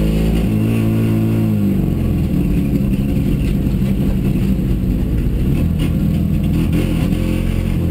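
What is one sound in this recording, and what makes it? A rally car engine roars loudly from inside the cabin, its pitch shifting as the driver changes gear.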